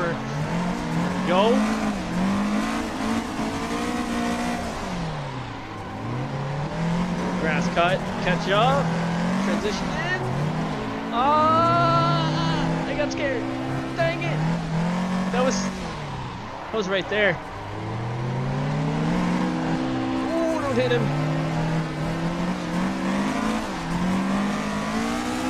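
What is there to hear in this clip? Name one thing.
A car engine revs up and down repeatedly.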